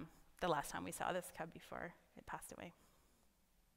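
A woman speaks with animation to an audience through a microphone in a large hall.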